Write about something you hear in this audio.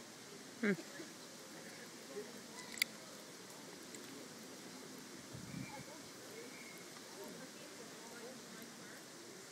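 A ferret licks and laps softly at close range.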